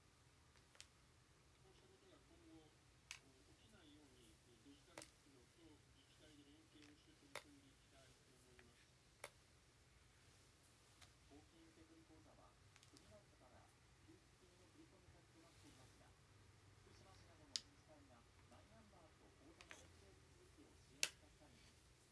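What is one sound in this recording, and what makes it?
A hair straightener clicks shut sharply now and then.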